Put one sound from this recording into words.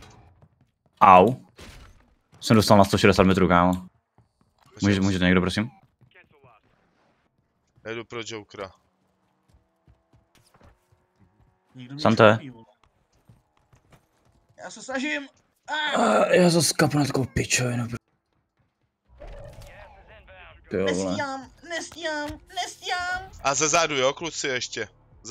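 A young man talks with animation into a close microphone, in short bursts.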